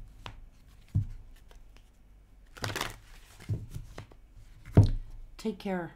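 Cards shuffle and tap against a table.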